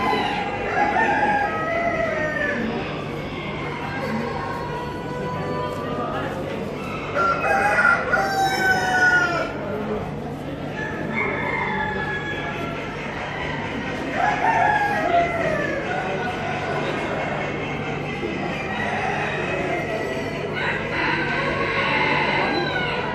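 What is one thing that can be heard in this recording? Chickens cluck and call close by.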